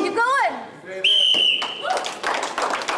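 A referee's whistle blows once, shrill and steady.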